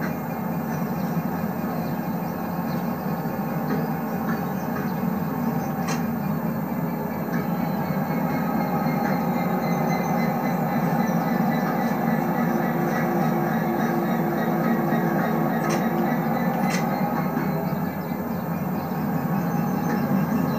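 A train's engine hums steadily as the train slowly pulls away.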